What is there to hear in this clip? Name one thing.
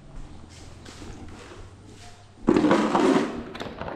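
A box is set down on a hard floor with a thud.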